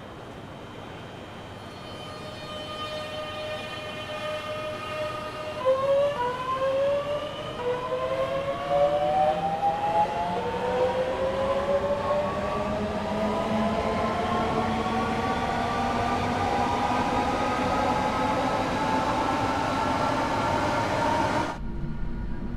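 An electric train's motor whines, rising in pitch as the train speeds up.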